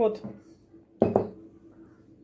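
A glass jar is set down on a hard surface with a knock.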